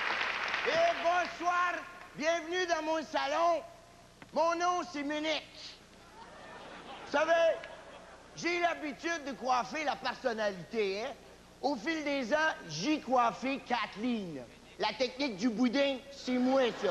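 A man talks with animation to an audience.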